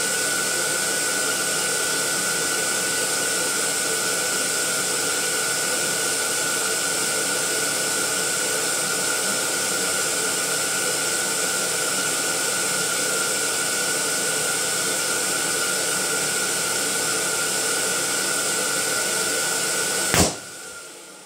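Gas hisses steadily as balloons inflate.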